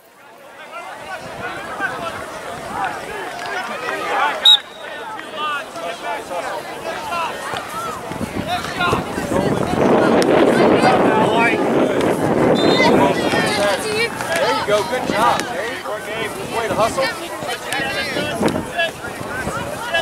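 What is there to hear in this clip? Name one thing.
Spectators shout and cheer from the sidelines.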